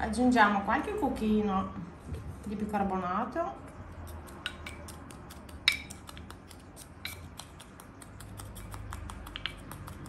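A spoon scrapes powder in a glass container.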